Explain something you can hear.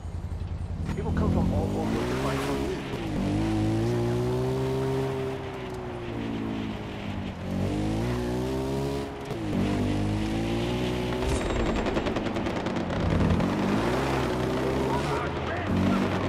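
Tyres crunch over a gravel track.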